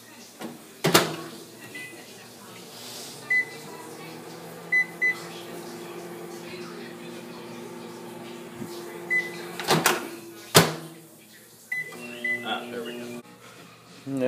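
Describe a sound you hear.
A microwave oven hums steadily.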